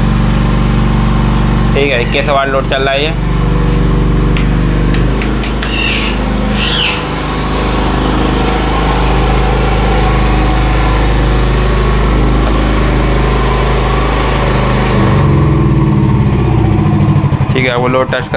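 A generator engine runs with a steady low hum, then stops.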